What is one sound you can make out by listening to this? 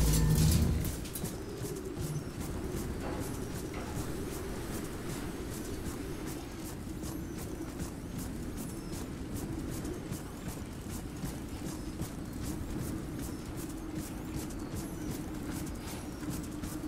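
Heavy armoured footsteps thud quickly on sand and gravel.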